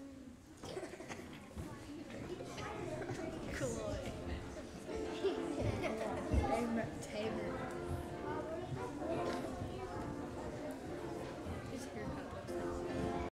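Young children chatter and call out in a large echoing hall.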